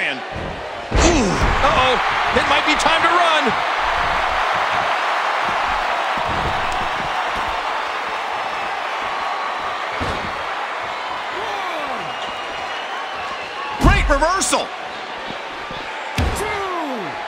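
Bodies thud heavily onto a mat.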